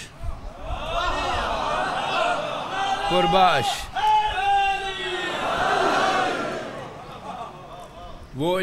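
An elderly man recites with feeling into a microphone, heard through loudspeakers.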